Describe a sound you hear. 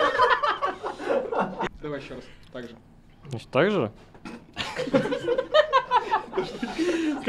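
Young men laugh loudly close by.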